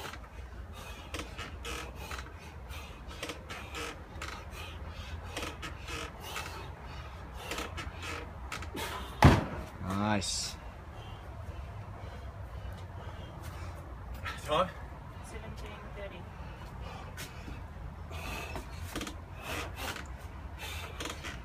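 A man grunts and breathes hard.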